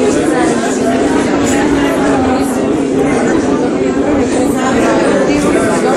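A crowd of young people chatters close by.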